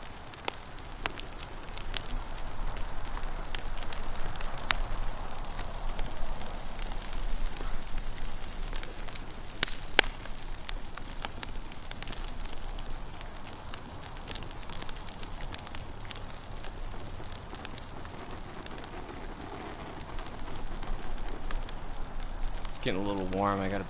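Burning wood crackles and pops.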